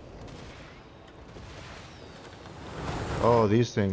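Rockets whoosh through the air.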